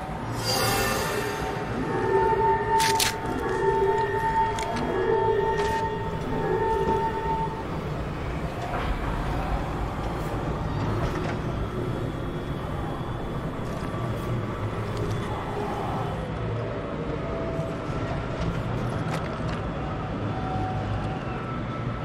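Quick footsteps run over a hard floor.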